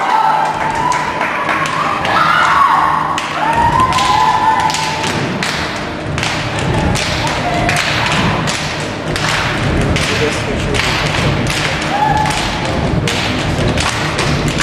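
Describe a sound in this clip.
A group of young women sing together in a large hall.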